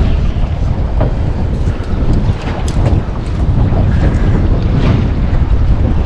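Choppy sea water splashes against a boat's hull.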